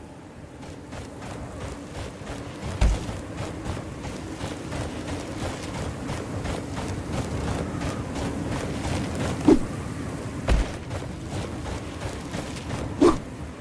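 Footsteps crunch on dry, rocky ground.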